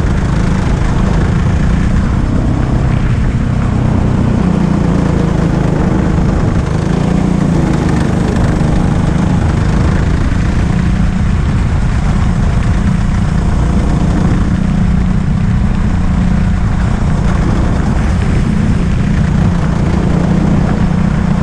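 A go-kart engine drones loudly and steadily, rising and falling in pitch as it speeds up and slows down.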